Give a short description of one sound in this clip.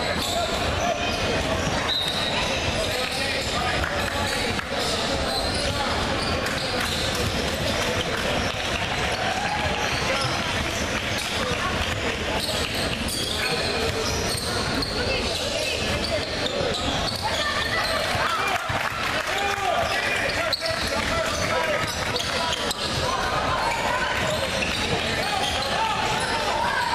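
Young players and spectators shout and chatter in a large echoing gym.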